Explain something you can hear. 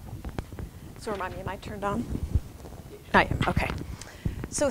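A woman speaks into a microphone in a room, heard through a loudspeaker.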